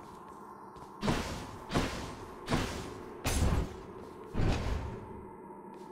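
Heavy crackling blasts strike several times in quick succession.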